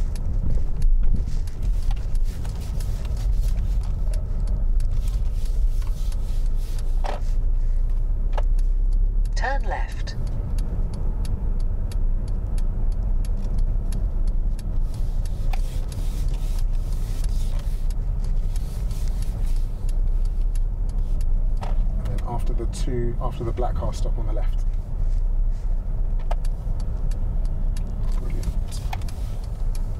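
A car engine hums steadily with road noise from the tyres.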